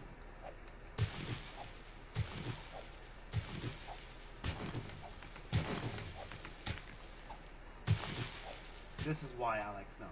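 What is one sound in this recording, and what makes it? A pickaxe strikes stone and frozen ground with repeated heavy thuds.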